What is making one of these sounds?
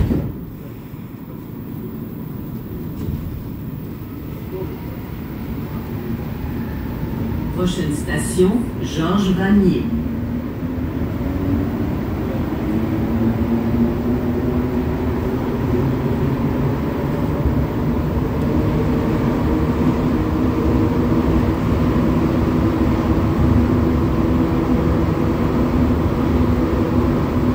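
A metro train rumbles steadily along its tracks.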